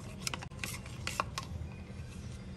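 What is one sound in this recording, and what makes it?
A spoon clinks against a plastic jug.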